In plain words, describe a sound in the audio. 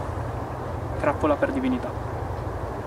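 A man speaks briefly and calmly outdoors.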